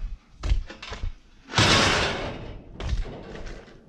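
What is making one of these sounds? A metal gate rattles and clanks as it is pushed open.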